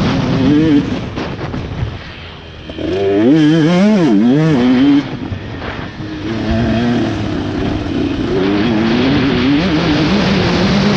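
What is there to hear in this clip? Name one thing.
Knobby tyres crunch and spray over loose dirt.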